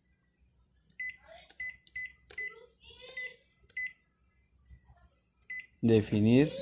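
A touchscreen panel beeps briefly as keys are pressed.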